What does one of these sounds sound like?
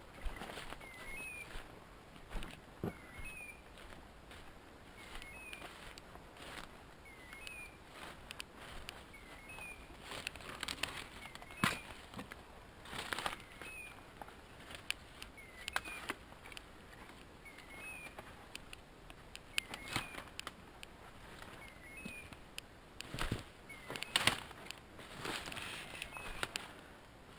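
Footsteps crunch through dry leaves and twigs.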